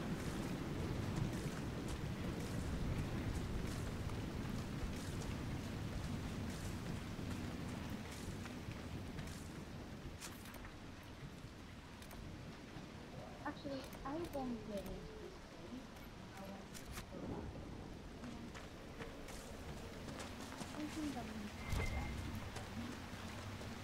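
Footsteps pad through wet grass.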